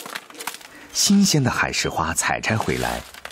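A hand rustles through dried seaweed.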